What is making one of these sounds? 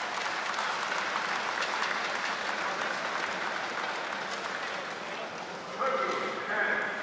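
A crowd murmurs and cheers in a large echoing hall, then fades.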